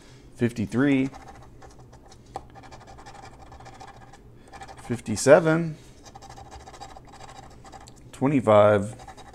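A coin scratches at the surface of a card.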